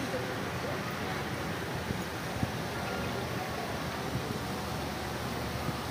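A fountain splashes softly outdoors.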